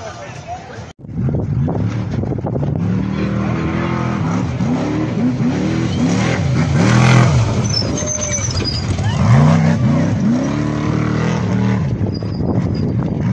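A racing truck engine roars and revs as it speeds past.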